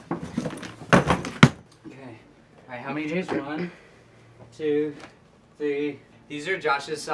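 A plastic laundry basket knocks and scrapes on a floor.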